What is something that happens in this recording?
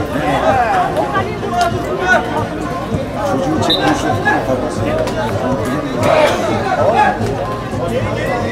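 A crowd of spectators chatters and shouts nearby, outdoors.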